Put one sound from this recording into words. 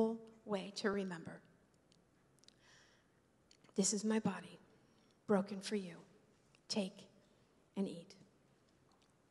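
A woman speaks through a microphone in short bursts, with long pauses.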